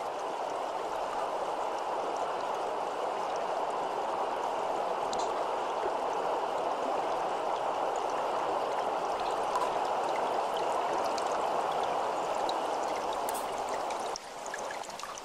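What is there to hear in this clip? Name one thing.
A river rushes over rocks in a steady roar.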